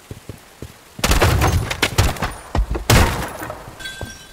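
An automatic rifle fires loud rapid bursts.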